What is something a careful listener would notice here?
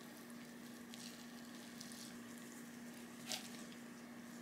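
A rice paddle scrapes and pats rice.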